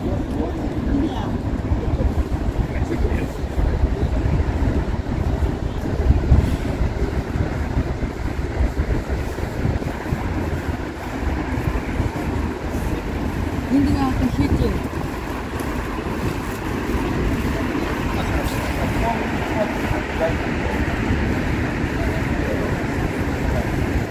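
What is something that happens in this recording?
Light rain patters steadily on wet pavement outdoors.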